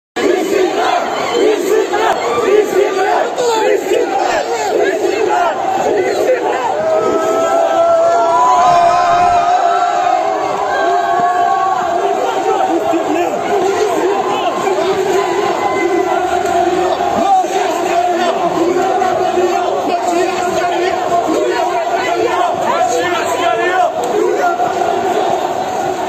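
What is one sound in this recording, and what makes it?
A large crowd of men and women chants and shouts loudly outdoors.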